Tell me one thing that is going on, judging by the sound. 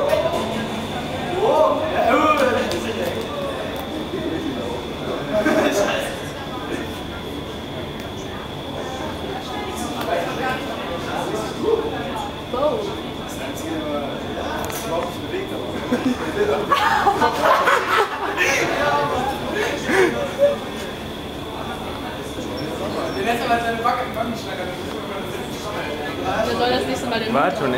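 Air roars steadily from a powerful fan.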